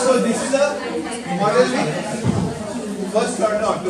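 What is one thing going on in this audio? A middle-aged man lectures with animation.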